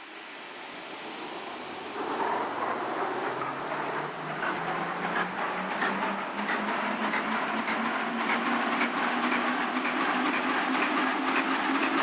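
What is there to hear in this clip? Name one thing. An electric subway train pulls away, its motors whining and rising in pitch.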